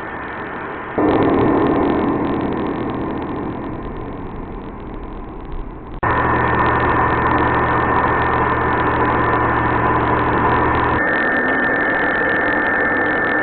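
A stepper motor hums and whines steadily as a threaded rod turns.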